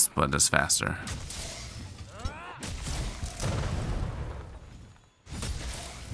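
A magical energy beam whooshes and crackles.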